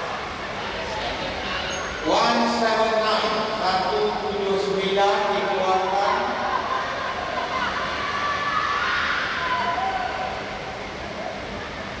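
Racing bicycles whir around a wooden track.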